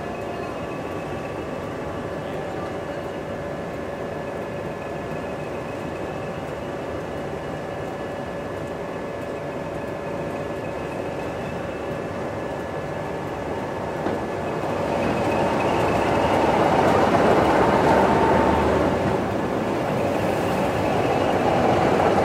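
A diesel locomotive engine idles with a steady hum close by.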